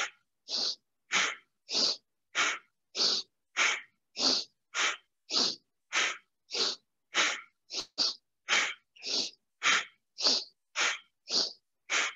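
A woman breathes out in quick, forceful, rhythmic bursts close by.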